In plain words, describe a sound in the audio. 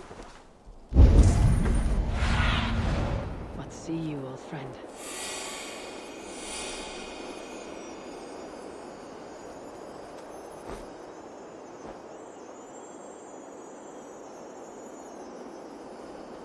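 Wind rushes loudly past, then eases to a soft steady hiss.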